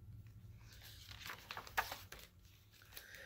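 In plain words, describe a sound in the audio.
Book pages rustle as a page is turned.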